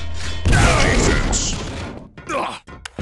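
A rocket explodes with a loud boom and echo.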